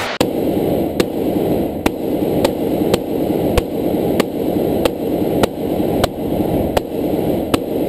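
Bullets crack sharply against a car's windshield, heard from inside the car.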